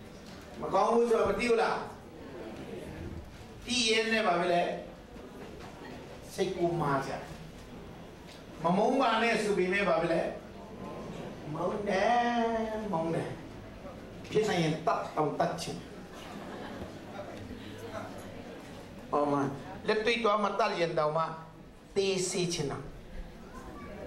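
A man speaks to a gathering in short bursts with pauses, heard close.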